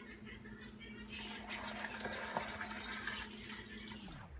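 Water pours from a glass bottle into a blender jug of ice.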